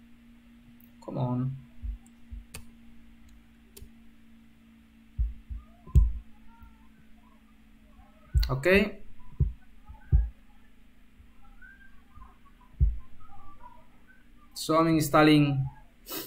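A man speaks calmly and close to a microphone, in short bursts.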